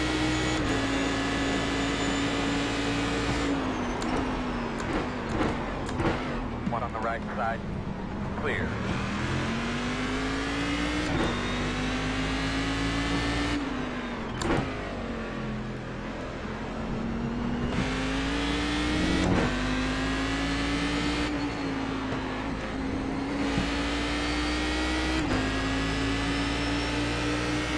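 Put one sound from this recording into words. A racing car engine drones steadily, rising and falling in pitch as it shifts gears.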